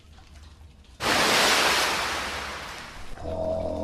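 A monster lets out a sudden, loud screeching roar.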